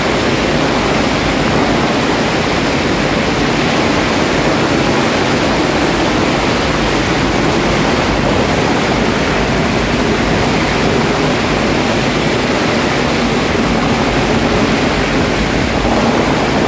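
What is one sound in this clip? Firecrackers crackle and pop rapidly and without pause, close by.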